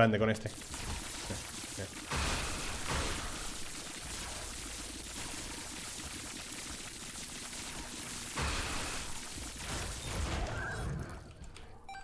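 Video game sound effects crackle and zap rapidly.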